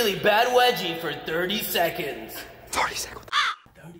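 A young man shouts with excitement close by.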